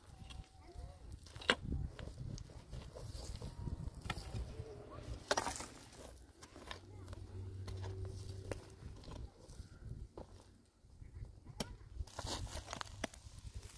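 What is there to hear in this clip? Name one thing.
A pickaxe digs into dry earth with dull thuds.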